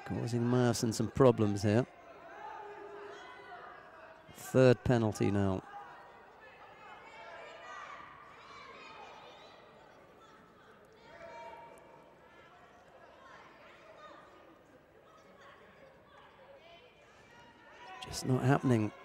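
A crowd murmurs and chatters quietly in the background.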